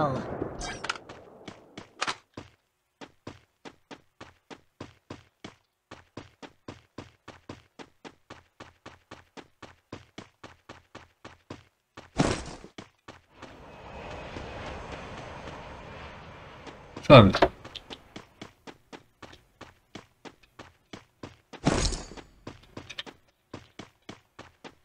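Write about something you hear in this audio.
Quick footsteps run steadily on hard ground.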